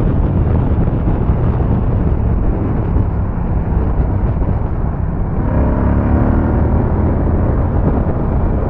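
Wind rushes loudly past at speed.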